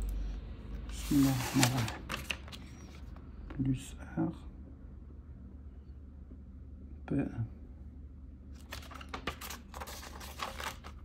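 A notebook page rustles as it is turned.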